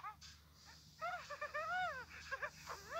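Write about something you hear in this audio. A cartoon bird character laughs in a high, chirpy voice.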